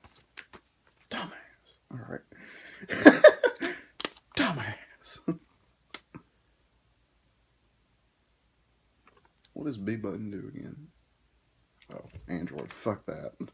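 Paper rustles as a card pack is handled.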